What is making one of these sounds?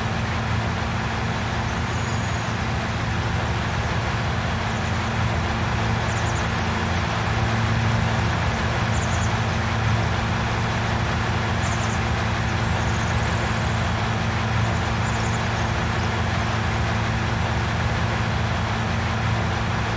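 A heavy harvester engine drones steadily as the machine drives along.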